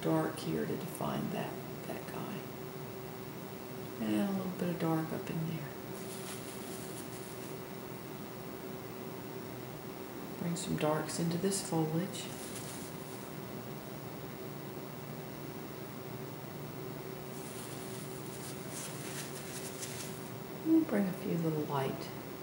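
A paintbrush dabs and brushes softly on canvas.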